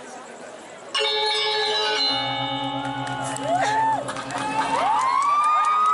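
A large ensemble of metal gongs and metallophones rings out, struck with mallets.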